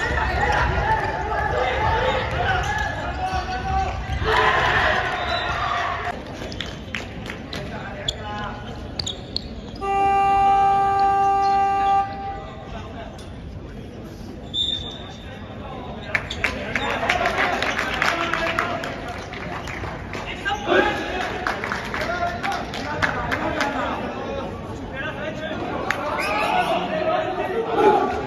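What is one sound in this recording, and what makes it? Young men shout and call out to each other in an echoing hall.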